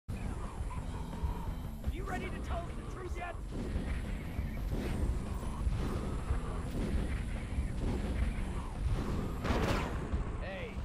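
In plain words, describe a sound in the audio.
A man talks casually, close to a microphone.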